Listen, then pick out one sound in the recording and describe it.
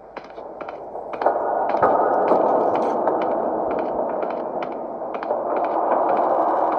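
Footsteps thud at a steady pace across a hard floor.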